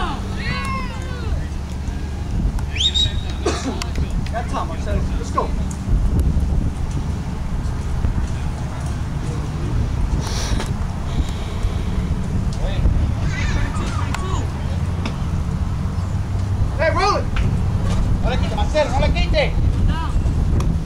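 Young players call out now and then across an open field.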